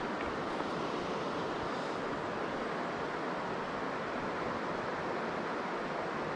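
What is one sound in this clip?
A fishing line swishes through the air during a cast.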